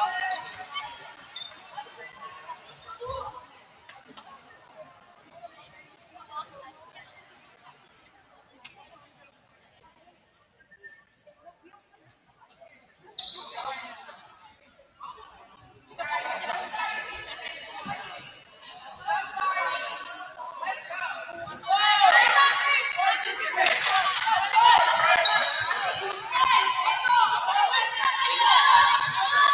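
Young women cheer and chant loudly in an echoing gym.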